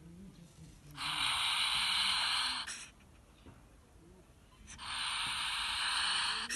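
A ferret hisses loudly in harsh bursts.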